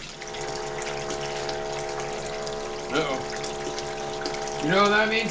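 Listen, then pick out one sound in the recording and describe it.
Water rushes steadily down a metal sluice and splashes into a tub.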